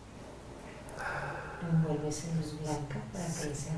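A man speaks close by in a low, relaxed voice.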